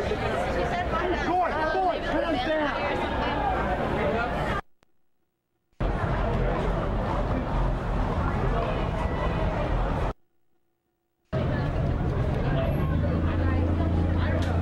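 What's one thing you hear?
A crowd of people chatters outdoors at night.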